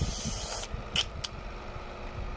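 Small plastic toy pieces click together.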